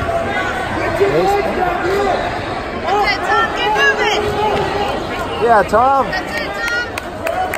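Spectators shout and cheer loudly from nearby.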